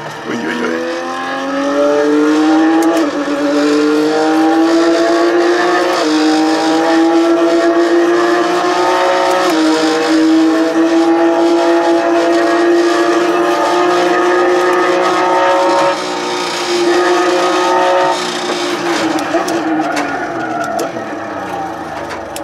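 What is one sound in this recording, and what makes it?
A simulated Porsche GT3 race car engine revs up through the gears over loudspeakers, then drops in pitch as the car slows.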